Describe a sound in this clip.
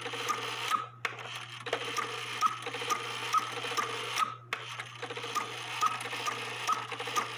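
A clock mechanism ticks and whirs with rapid metallic clicks.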